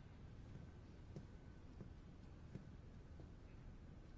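Footsteps walk slowly across a wooden stage.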